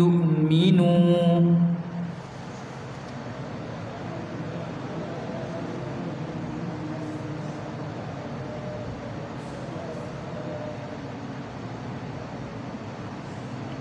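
A man chants loudly through a microphone, then continues reciting softly in an echoing hall.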